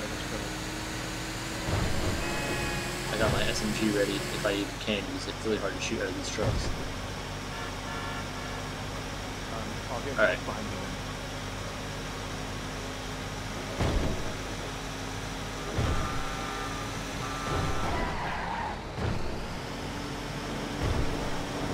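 A truck engine hums steadily.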